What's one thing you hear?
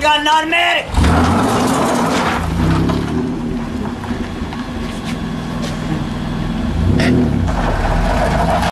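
A car drives off and fades into the distance.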